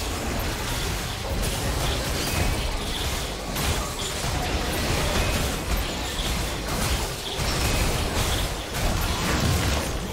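Heavy hits thud against a large monster.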